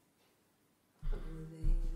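An acoustic guitar is strummed.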